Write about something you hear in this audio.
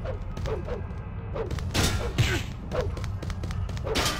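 Blows land with dull thuds during a scuffle.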